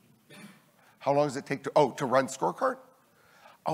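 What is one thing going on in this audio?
A man speaks into a microphone in an echoing hall.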